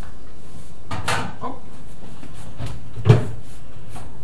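A glass dish clatters on a metal stovetop.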